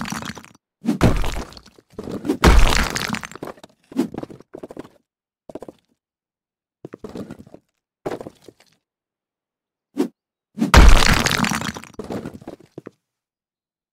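A sledgehammer smashes through a brick wall with heavy crashing thuds.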